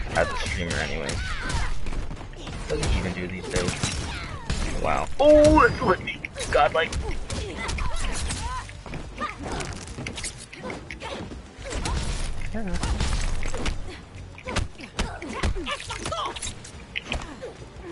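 Heavy punches and kicks land with sharp thuds and cracks.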